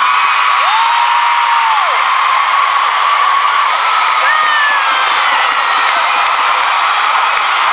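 A large crowd screams and cheers loudly in a big echoing arena.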